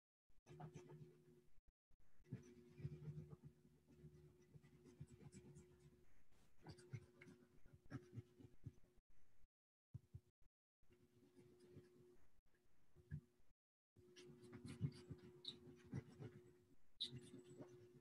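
A pastel crayon scratches across paper.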